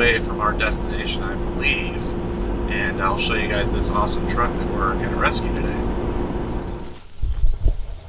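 A car drives along a road with a steady rumble inside the cabin.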